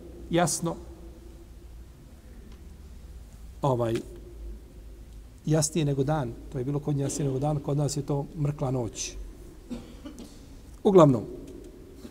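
A middle-aged man speaks calmly and slowly into a close microphone, with pauses.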